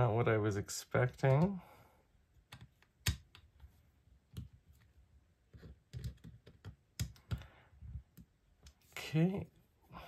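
A small screwdriver clicks and ticks against tiny metal screws.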